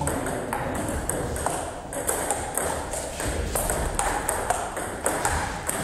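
A table tennis ball clicks quickly back and forth between paddles and a table in an echoing hall.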